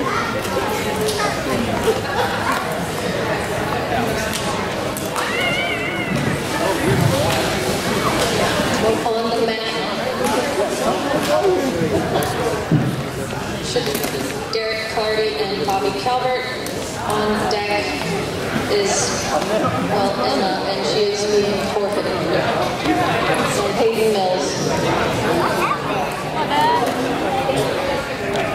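A crowd of people chatter throughout a large echoing hall.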